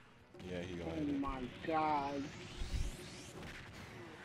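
Heavy punches land with booming smacks.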